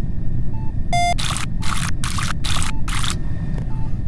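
Electronic buttons click and beep in a quick series.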